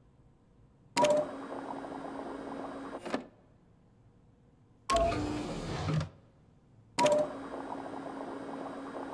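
Liquid gurgles and pours between tubes.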